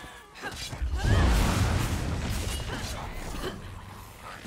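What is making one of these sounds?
Flames roar and crackle in a burst of fire.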